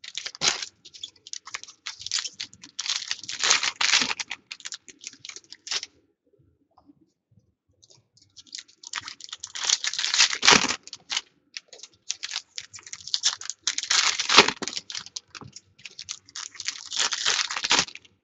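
Trading cards rustle and click as hands shuffle through a stack.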